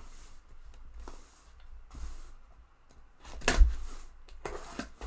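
A blade slits packing tape on a cardboard box.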